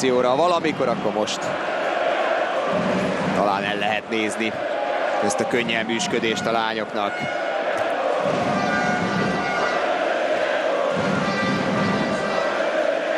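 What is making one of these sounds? A large crowd cheers and chants in a big echoing arena.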